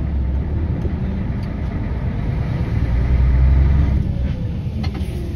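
A truck drives past close by in the opposite direction.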